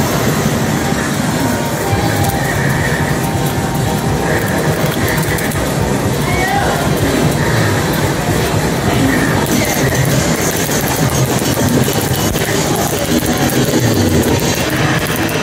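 Loud, fast electronic dance music plays from an arcade machine's speakers.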